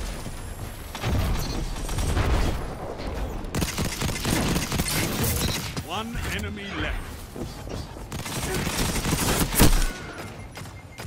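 Gunfire rings out in bursts, loud and close.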